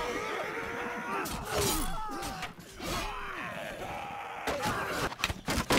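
Metal weapons clash and clang in a close battle.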